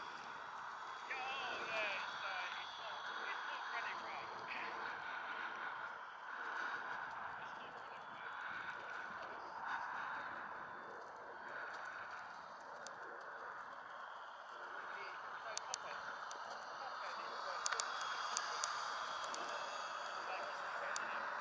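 A model plane's electric motor whines steadily overhead.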